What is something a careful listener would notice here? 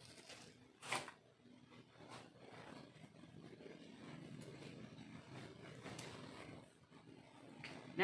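A backpack's fabric rustles and thumps as it is packed.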